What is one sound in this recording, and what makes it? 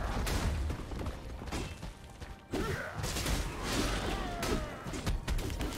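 Game combat sounds whoosh and clash in quick bursts.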